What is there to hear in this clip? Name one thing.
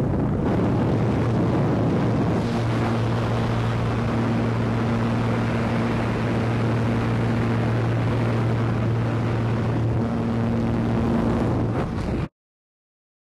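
A small plane's engine drones steadily, close by.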